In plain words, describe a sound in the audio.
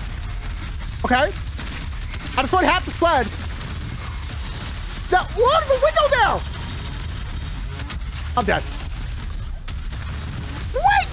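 A young man shouts and exclaims excitedly into a close microphone.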